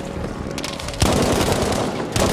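A submachine gun fires a burst.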